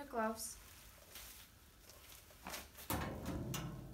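Rubber gloves snap as they are pulled off.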